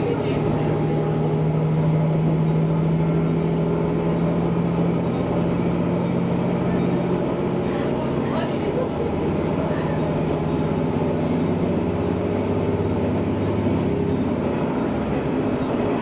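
A train's motor hums and slowly drops in pitch.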